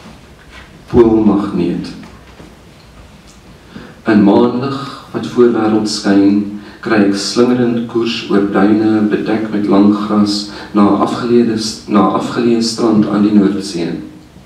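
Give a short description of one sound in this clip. A man reads aloud calmly into a microphone.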